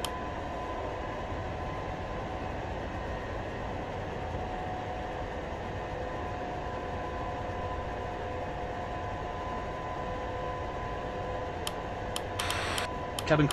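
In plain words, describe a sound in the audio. A jet engine hums steadily as an airliner taxis.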